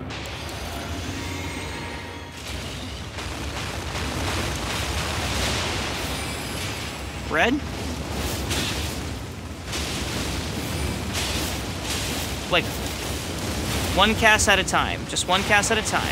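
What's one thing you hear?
A huge beast growls and stomps heavily.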